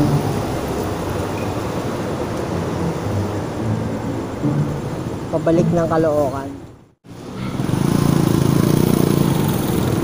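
A motorcycle engine idles close by.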